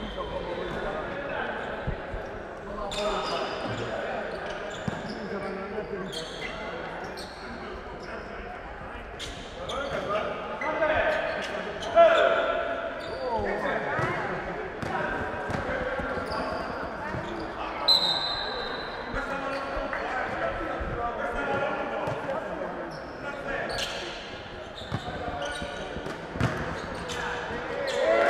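A crowd murmurs and calls out in a large hall.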